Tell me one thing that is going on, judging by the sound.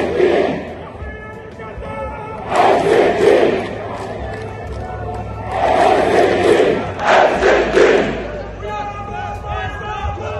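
A large crowd chants loudly in rhythmic bursts outdoors.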